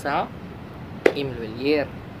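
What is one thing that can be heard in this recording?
A young man claps his hands once.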